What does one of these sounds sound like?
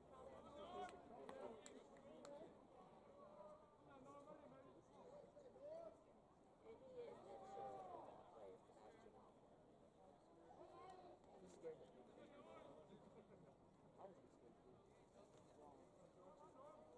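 Men talk casually nearby in an open outdoor space.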